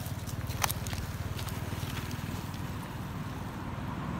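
A monkey rustles through dry leaves on the ground.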